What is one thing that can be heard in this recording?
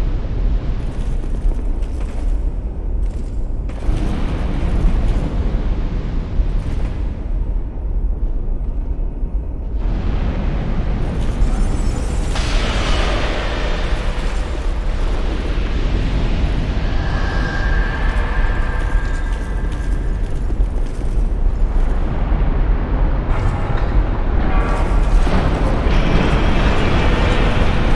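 Flames roar steadily.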